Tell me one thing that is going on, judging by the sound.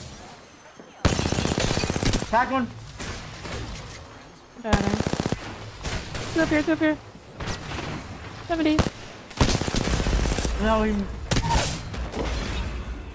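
Rapid gunshots crackle.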